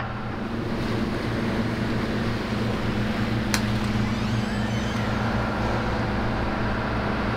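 A door latch clicks.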